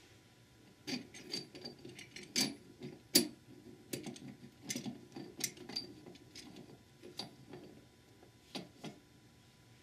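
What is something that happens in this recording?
Metal parts clink and tap sharply.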